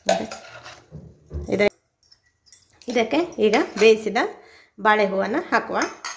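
A spoon scrapes and stirs ground spices in a metal jar.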